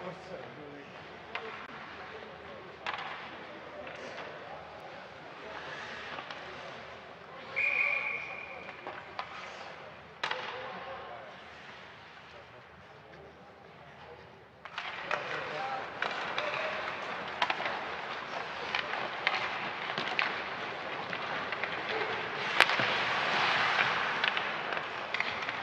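Hockey sticks click and clack against the puck.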